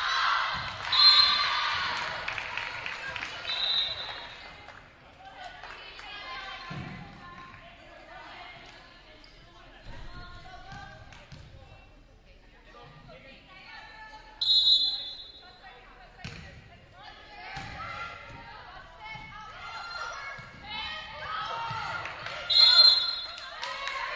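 A referee's whistle blows in short sharp blasts.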